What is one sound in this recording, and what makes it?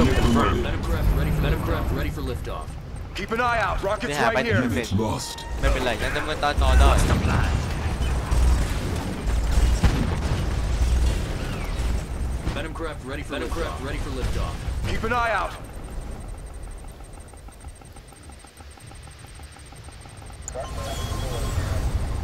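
Tank guns fire in rapid bursts.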